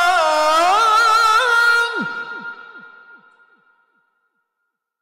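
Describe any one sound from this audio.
A young man chants loudly into a microphone, his voice echoing through a large hall.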